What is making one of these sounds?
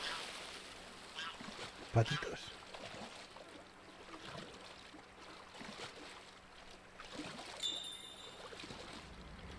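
Water swishes and laps as a man swims.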